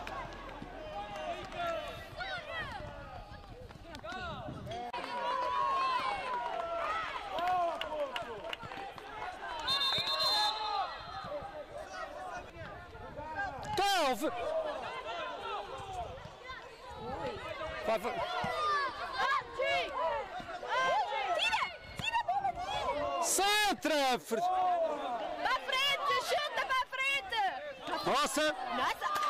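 Children shout and call to each other across an outdoor sports field.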